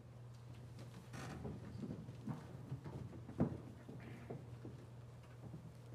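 Choir members shuffle and rustle their music folders.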